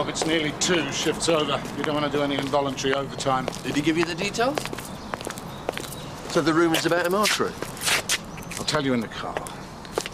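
A middle-aged man talks close by as he walks.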